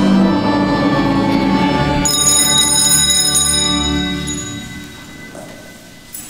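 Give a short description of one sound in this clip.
Several men sing together, echoing in a large hall.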